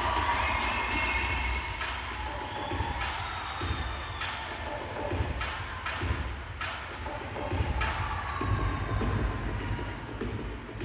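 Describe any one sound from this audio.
Dancers' feet stomp on a stage.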